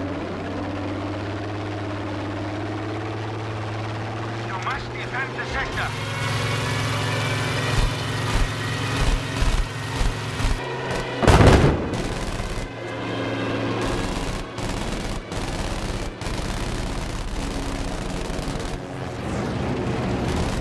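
A propeller plane engine drones steadily.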